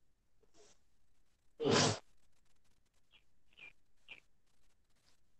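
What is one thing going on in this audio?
Fabric swishes sharply with quick punches and strikes.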